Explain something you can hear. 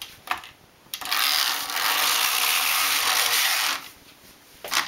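A knitting machine carriage rattles and whirs across the needle bed.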